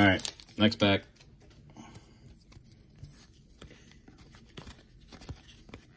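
Trading cards rustle softly as hands flick through them.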